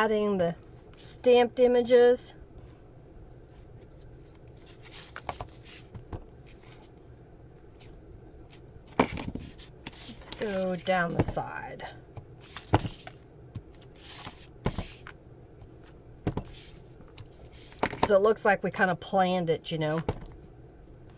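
A woman talks calmly and casually into a microphone.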